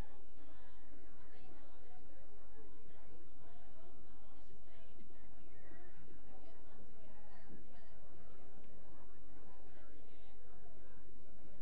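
Women and children talk at once nearby, overlapping in a steady murmur of chatter.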